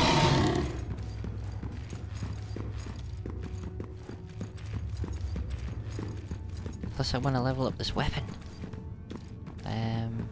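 Armored footsteps clank steadily on a hard floor.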